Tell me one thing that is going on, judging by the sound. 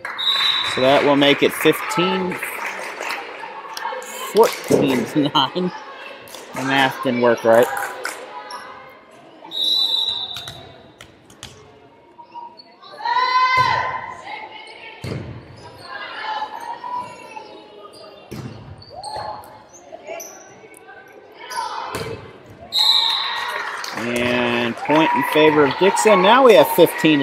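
Young women shout and call out loudly in a large echoing gym.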